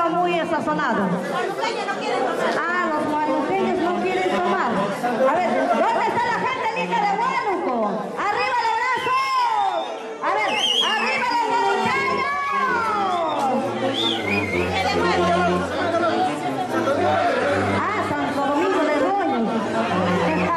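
A brass band plays a lively tune with saxophones.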